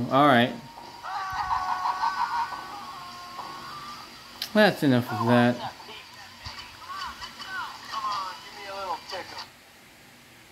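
Electronic game music plays through a small speaker.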